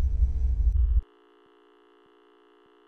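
A faint steady test tone hums.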